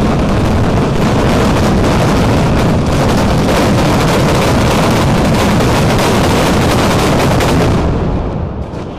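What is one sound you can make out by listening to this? Firecrackers explode in a rapid, deafening barrage, close by.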